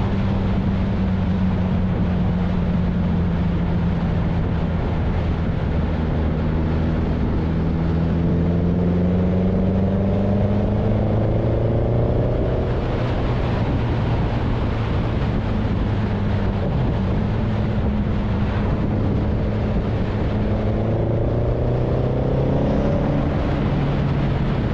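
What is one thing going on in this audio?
Wind rushes loudly past a rider's helmet.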